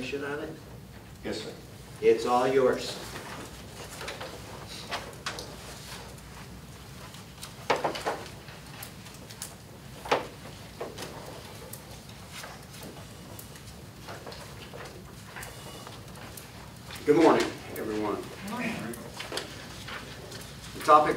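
A man speaks at a distance in an echoing room.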